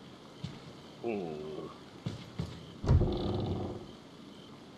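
Wooden cabinet doors creak open.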